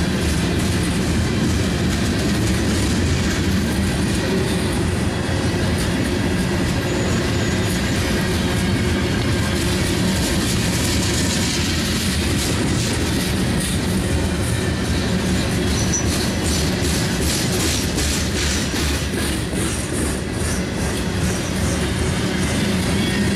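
Steel wheels clack rhythmically over rail joints.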